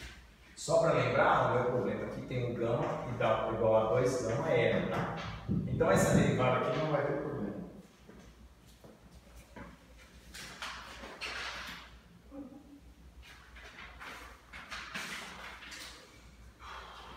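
A middle-aged man speaks calmly, lecturing in a room with a slight echo.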